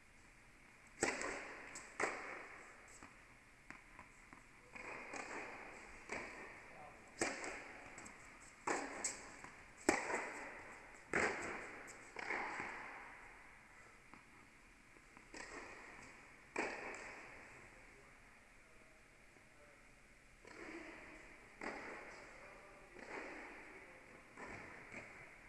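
Tennis rackets strike a ball back and forth, each hit echoing through a large hall.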